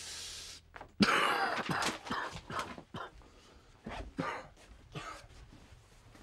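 A man talks loudly with animation nearby.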